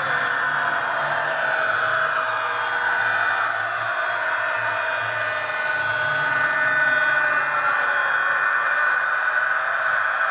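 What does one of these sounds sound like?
A model train's electric motor whirs steadily as it rolls along the track.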